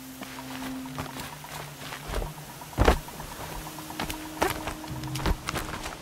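Hands grip and knock against a stone wall while climbing.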